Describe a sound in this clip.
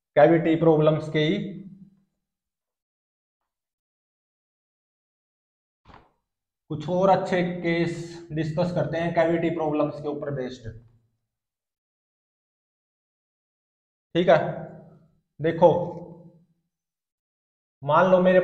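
A young man speaks calmly, close by, in short bursts with pauses.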